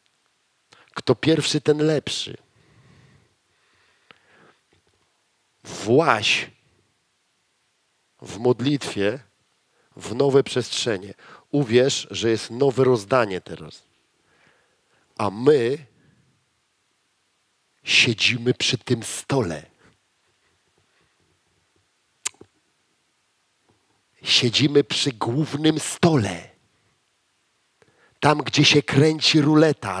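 A man speaks with animation into a headset microphone, in bursts with pauses.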